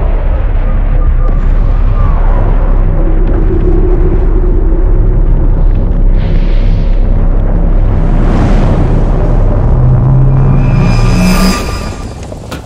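Loud explosions boom and rumble one after another.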